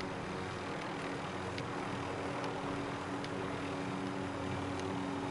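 A helicopter's rotor drones steadily and loudly.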